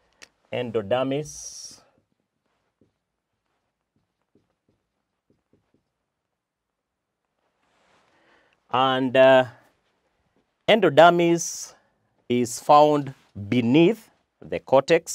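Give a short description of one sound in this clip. A man speaks calmly and clearly, as if lecturing, close to a microphone.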